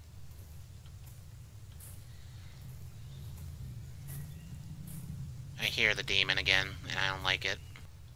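Footsteps swish through grass at a steady walk.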